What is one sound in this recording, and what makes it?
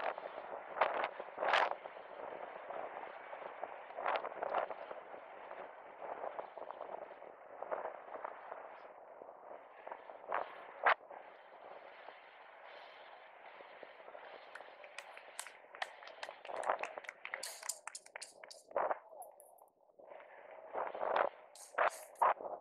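Inline skate wheels roll and rumble on asphalt.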